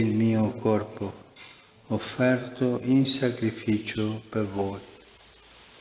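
An elderly man speaks slowly and solemnly, heard through a microphone.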